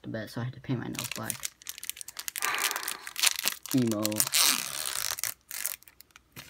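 A foil wrapper tears open.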